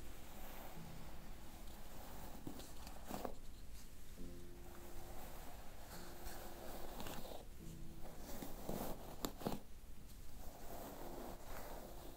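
Fingers rub and rustle through hair close by.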